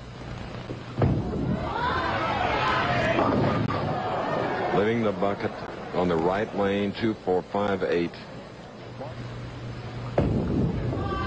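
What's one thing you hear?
Bowling pins crash and scatter.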